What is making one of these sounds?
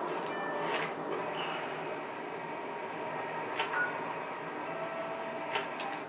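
A handheld device's menu clicks softly as options change.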